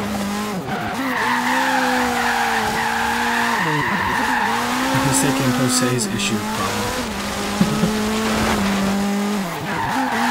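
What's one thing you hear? A rally car engine roars at high revs, dropping and rising in pitch as it shifts gears.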